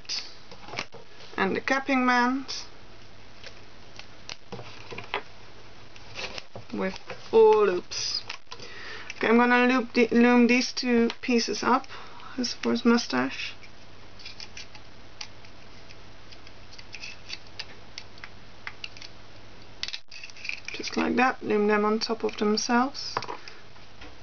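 Small plastic pieces click and tap softly.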